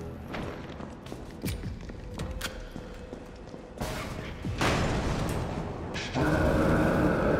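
Footsteps thud on hard stairs, echoing.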